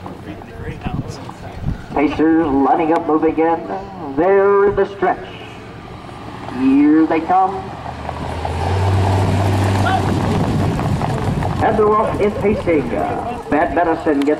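A pickup truck engine hums as it drives slowly along the track.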